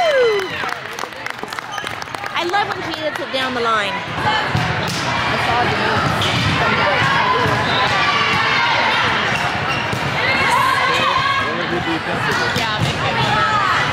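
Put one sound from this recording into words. Young women shout and cheer in a large echoing gym.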